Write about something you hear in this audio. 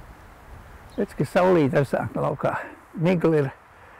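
An elderly man speaks with animation outdoors.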